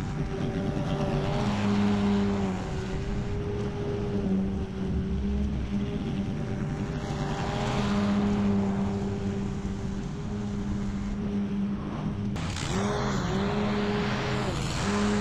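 Mower blades cut through grass with a rough whirring.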